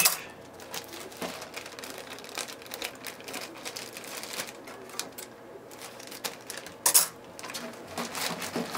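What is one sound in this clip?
A plastic bag crinkles and rustles in someone's hands.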